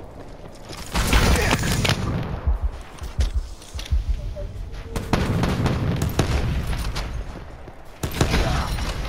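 Gunfire cracks and echoes.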